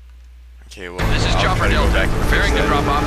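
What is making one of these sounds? A helicopter's rotor thumps loudly overhead.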